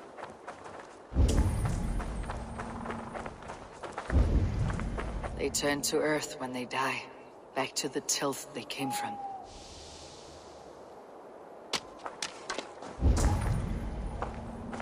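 Footsteps crunch on frozen ground.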